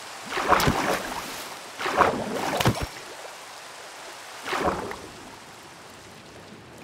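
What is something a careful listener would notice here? Rain patters steadily on water.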